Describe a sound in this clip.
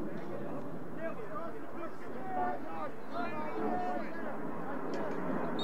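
Several men talk and call out nearby, outdoors.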